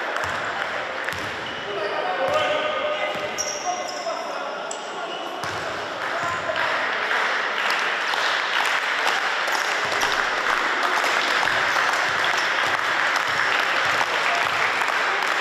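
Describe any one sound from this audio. A crowd cheers and chatters in an echoing hall.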